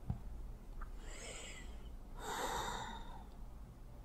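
An elderly woman breathes out heavily.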